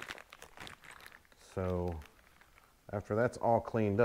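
A plastic bag crinkles as it is opened.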